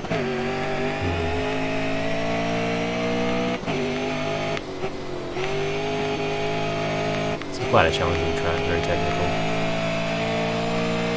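A racing car engine roars at high revs, with brief dips as it shifts gears.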